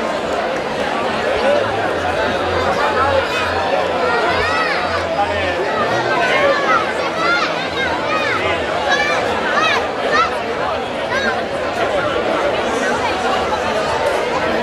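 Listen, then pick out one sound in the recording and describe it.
A large crowd of men and women chatters and calls out close by.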